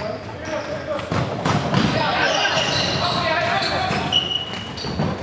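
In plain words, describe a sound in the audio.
A ball is kicked with a thud that echoes in a large hall.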